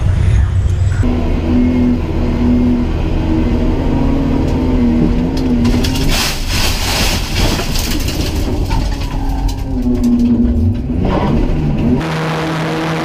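A race car engine roars loudly from inside the car and shifts through the gears.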